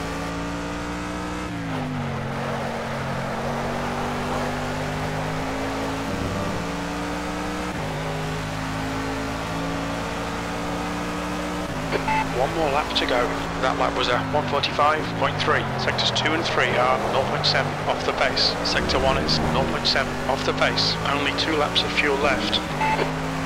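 A racing car engine roars, rising and falling in pitch as gears shift.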